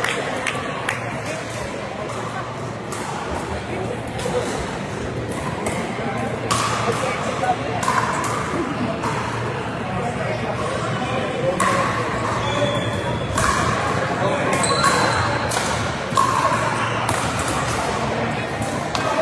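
Players' shoes squeak on the court floor.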